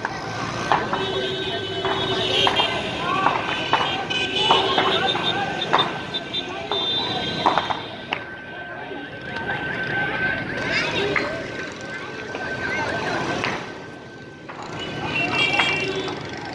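Car and motorbike horns honk now and then.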